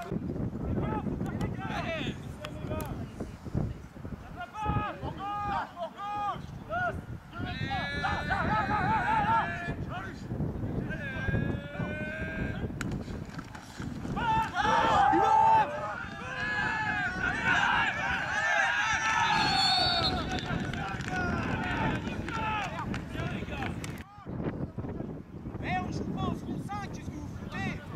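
Young men shout and call out to each other across an open field outdoors.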